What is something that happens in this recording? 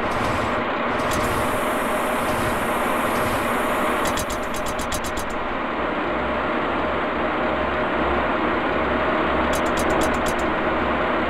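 An electric train rumbles steadily along the tracks.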